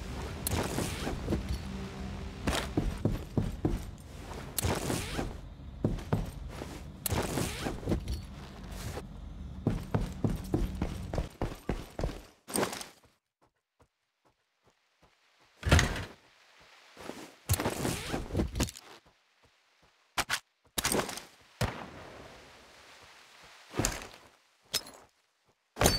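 Items rustle and click as they are picked up.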